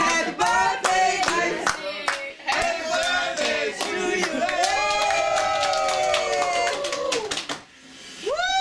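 A small group of men and women sing together close by.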